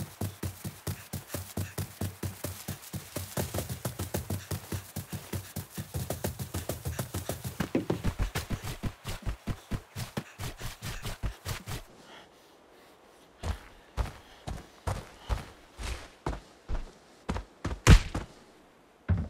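Footsteps run quickly over grass and ground.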